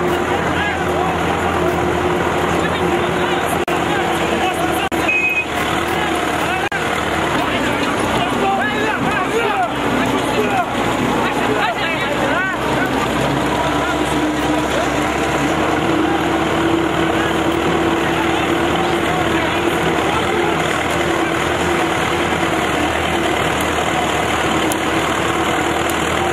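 A large outdoor crowd of men shouts and chatters constantly.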